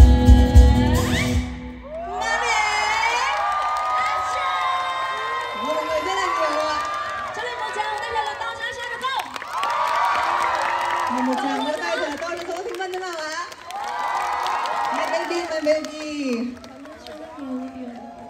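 A second young woman sings along into a microphone.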